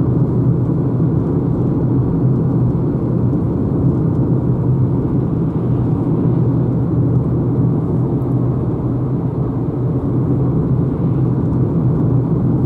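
Tyres roll steadily on a paved road inside a moving car.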